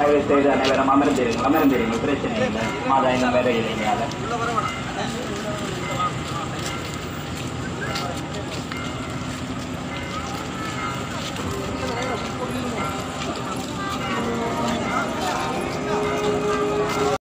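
A crowd of men and women murmur and talk nearby outdoors.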